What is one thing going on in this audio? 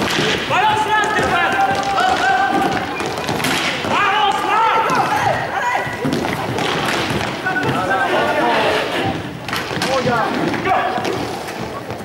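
Young men shout to one another across an echoing hall.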